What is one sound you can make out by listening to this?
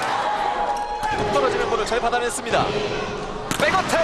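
A volleyball is struck hard.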